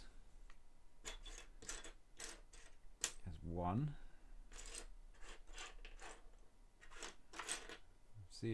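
Plastic bricks click and rattle as they are handled.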